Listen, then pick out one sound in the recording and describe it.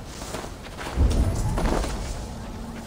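A heavy thud sounds as someone drops onto the ground.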